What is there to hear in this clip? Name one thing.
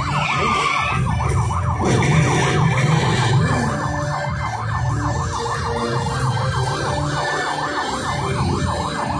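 A police siren wails rapidly up and down close by.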